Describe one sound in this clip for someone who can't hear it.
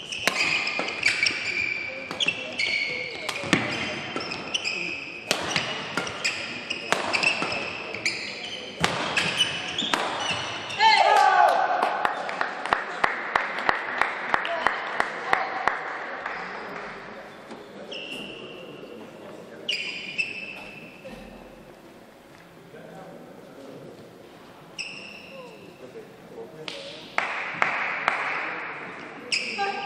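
Rackets strike a shuttlecock in a fast rally.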